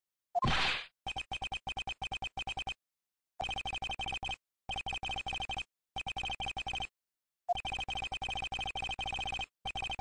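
Rapid electronic blips chatter in quick bursts.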